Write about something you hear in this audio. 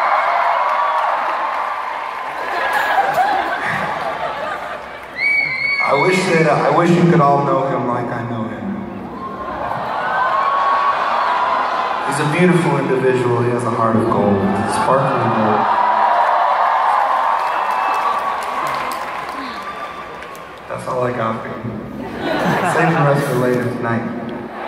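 A crowd cheers and screams loudly in a large echoing arena.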